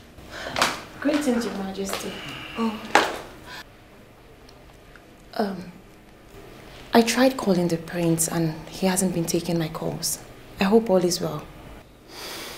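A young woman speaks with agitation nearby.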